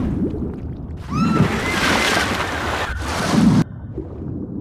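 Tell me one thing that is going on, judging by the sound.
Water splashes and bubbles.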